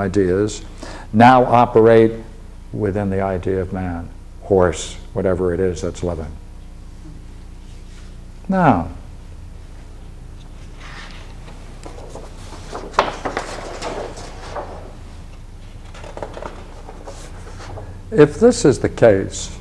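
An elderly man lectures calmly, close by.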